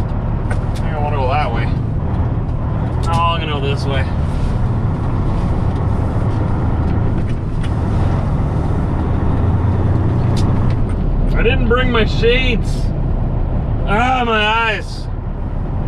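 A man sings loudly in short bursts, close by.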